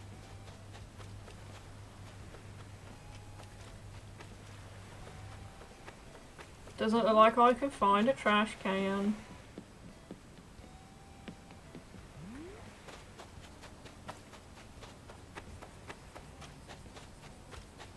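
Quick light footsteps patter on sand.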